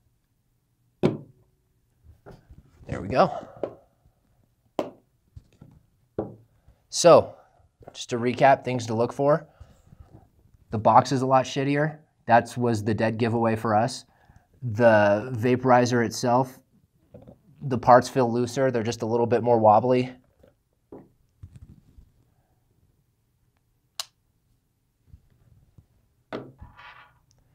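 Hard objects knock lightly as they are set down on a table.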